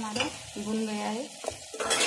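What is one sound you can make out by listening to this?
A spoon stirs a thick sauce in a bowl.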